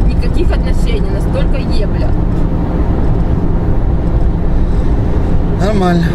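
A car engine and tyres drone steadily on a motorway.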